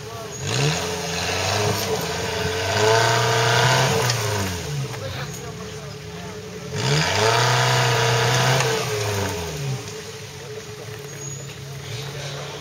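An engine revs hard in loud bursts, rising and falling.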